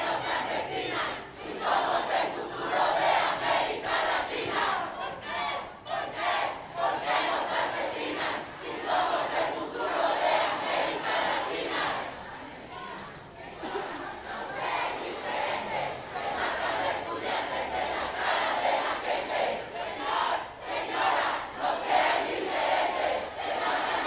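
A large crowd chants loudly together outdoors.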